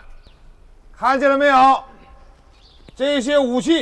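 A man shouts loudly to a crowd outdoors.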